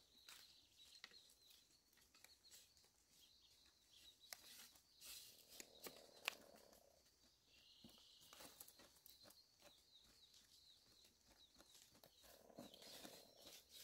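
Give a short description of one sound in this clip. Dry leaves rustle and crackle under hands.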